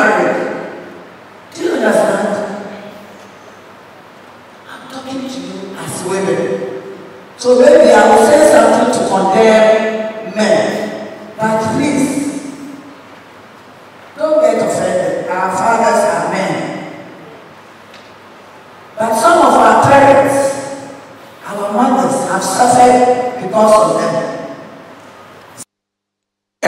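A woman speaks with animation into a microphone, heard through loudspeakers in a large echoing hall.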